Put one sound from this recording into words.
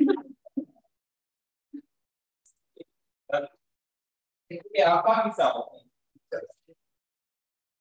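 A young man speaks into a microphone in short bursts, heard over an online call.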